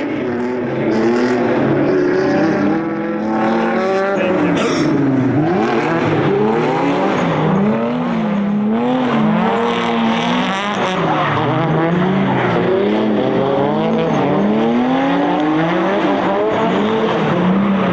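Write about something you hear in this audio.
Car tyres screech as the cars slide on asphalt.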